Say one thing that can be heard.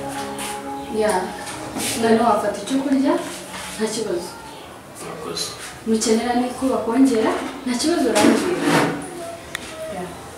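A young woman speaks softly and earnestly nearby.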